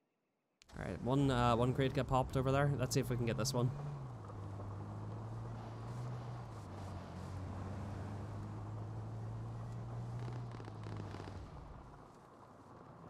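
A car engine hums steadily as the car drives over grass.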